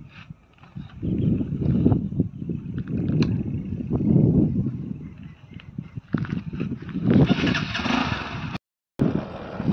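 A motorcycle engine idles and revs.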